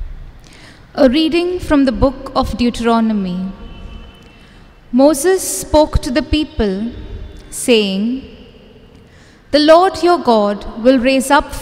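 A young woman reads aloud calmly into a microphone in an echoing room.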